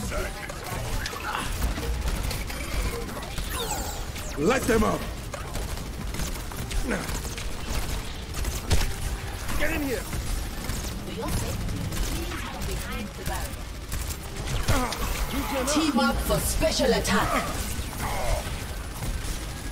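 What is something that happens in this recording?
Rapid gunfire rattles throughout.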